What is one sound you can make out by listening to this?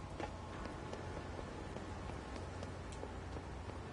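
Footsteps clank softly on metal stairs.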